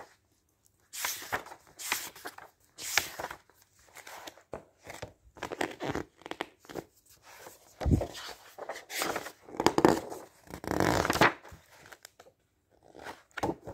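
Paper pages rustle and flap as magazines are flipped through.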